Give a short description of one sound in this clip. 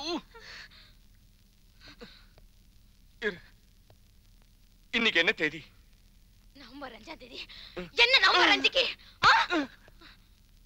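A woman speaks sharply and angrily.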